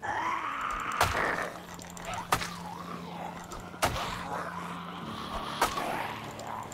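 A weapon strikes with sharp, heavy thuds, again and again.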